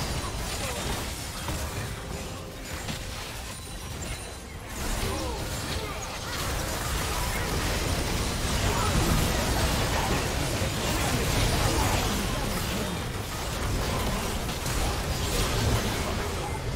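Spell blasts, clashes and impact effects crackle and boom in a busy fight.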